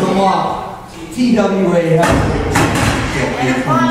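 A metal chair crashes onto a wrestling ring mat.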